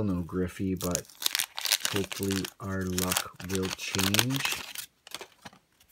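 Plastic wrapping crinkles and tears as a card pack is ripped open.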